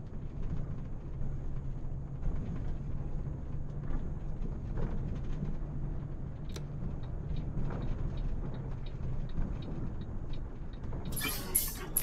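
A bus engine hums steadily as the bus drives along a road.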